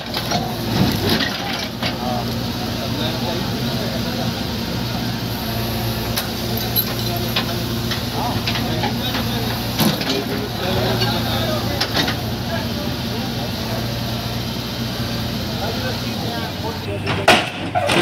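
A diesel engine idles and rumbles steadily close by.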